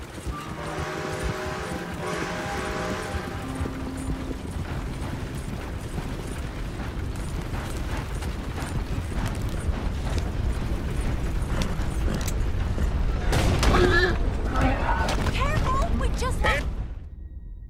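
Wooden wagon wheels rumble and creak over a dirt track.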